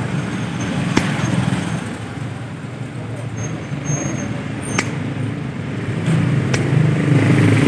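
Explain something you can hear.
Pliers click against a metal key blank.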